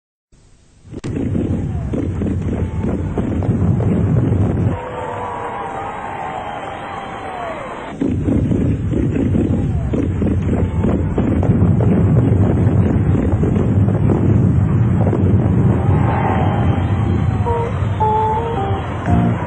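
Fireworks burst and crackle overhead.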